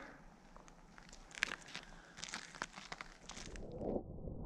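Footsteps crunch on icy snow close by.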